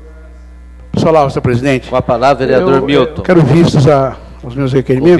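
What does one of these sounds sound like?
A man speaks up through a microphone.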